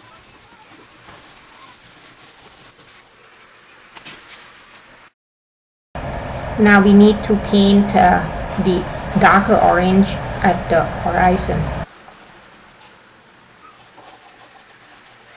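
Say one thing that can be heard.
Chalk pastel rubs and scrapes softly across paper.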